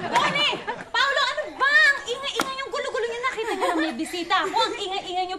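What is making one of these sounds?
A young woman speaks sharply with animation, close by.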